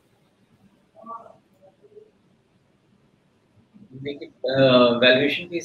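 A man answers calmly through a microphone.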